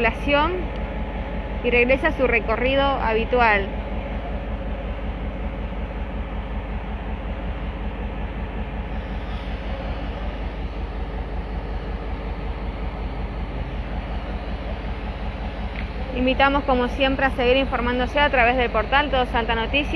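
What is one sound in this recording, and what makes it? A freight train rolls slowly past with a low, steady rumble.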